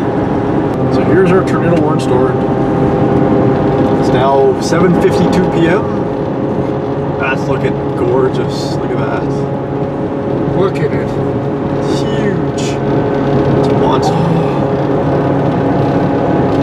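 Raindrops tap on a car windshield.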